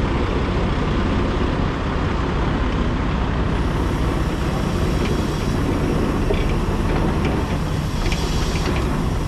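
Wind buffets loudly against a microphone while moving.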